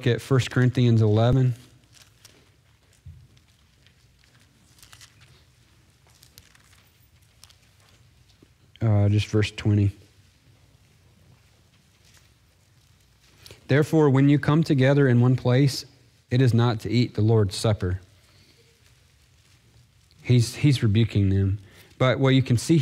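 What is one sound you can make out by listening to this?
A man speaks calmly into a microphone, reading out with pauses.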